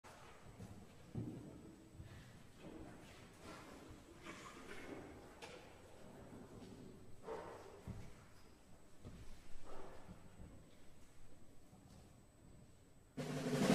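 An audience murmurs and shifts quietly in a large hall.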